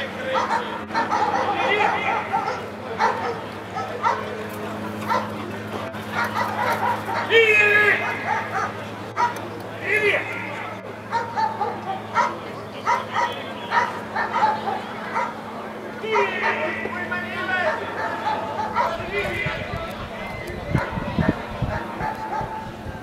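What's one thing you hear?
People chatter at a distance outdoors.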